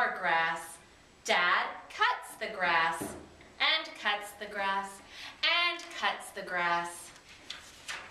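A woman reads a story aloud with lively expression, close by.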